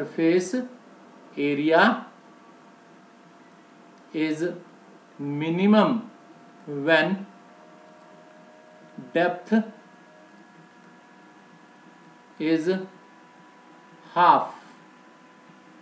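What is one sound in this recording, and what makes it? A man speaks calmly in short phrases close to a microphone.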